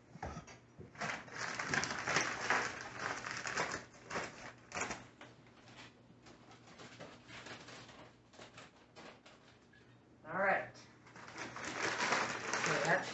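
A paper bag rustles and crinkles.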